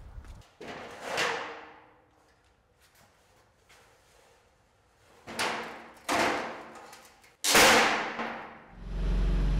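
An aluminium ramp clatters and clanks loudly as it is set down on a hard floor in a large echoing room.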